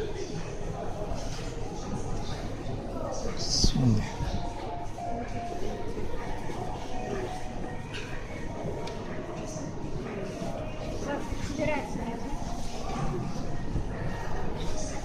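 Music plays through loudspeakers nearby.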